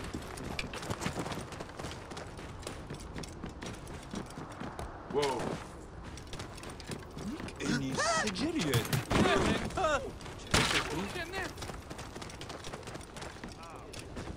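A camel's hooves thud on sandy ground at a gallop.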